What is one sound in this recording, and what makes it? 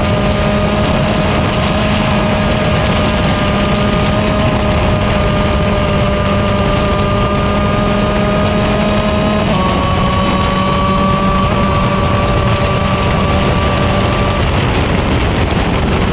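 A kart engine drones loudly and steadily close by, with a brief shift in pitch.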